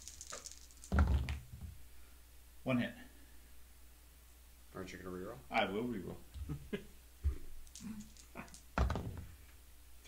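Dice clatter onto a tabletop.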